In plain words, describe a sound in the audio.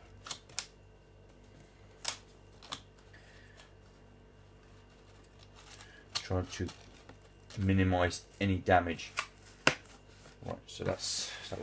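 Hands slide and tap on a cardboard box.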